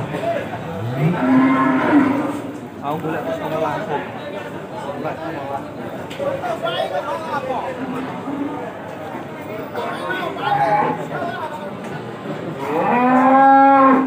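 Cattle moo loudly close by.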